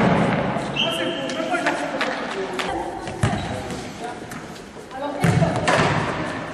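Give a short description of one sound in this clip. Girls shout and call out in a large echoing hall.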